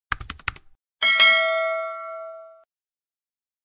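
A small bell rings once and slowly fades.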